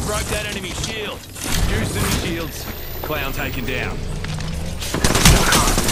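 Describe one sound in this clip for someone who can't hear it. A shield battery whirs and charges up.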